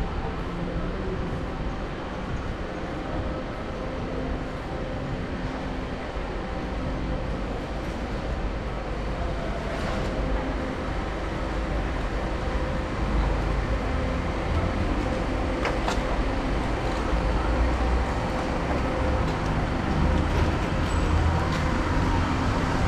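Traffic hums steadily through a city street outdoors.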